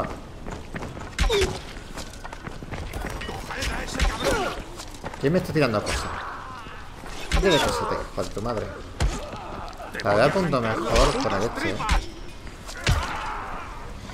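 Heavy blows strike with sharp thuds, again and again.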